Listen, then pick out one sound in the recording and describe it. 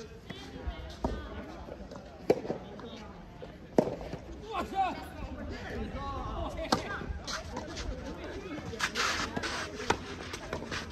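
Tennis balls are struck with rackets, with sharp pops echoing outdoors.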